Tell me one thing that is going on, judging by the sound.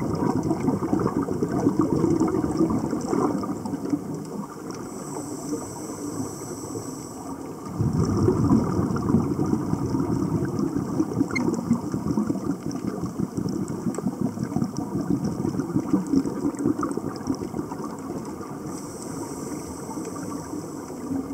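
Scuba divers' breathing bubbles gurgle and rumble underwater.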